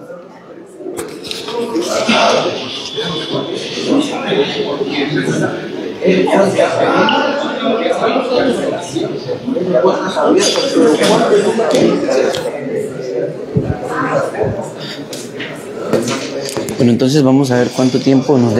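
Several people talk in an echoing hall.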